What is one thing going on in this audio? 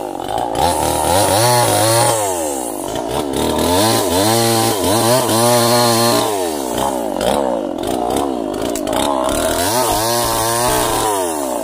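A chainsaw cuts through wood.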